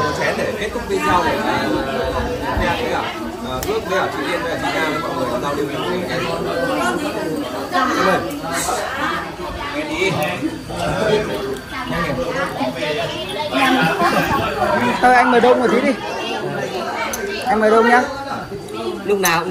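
Several young people chat and laugh around the speaker.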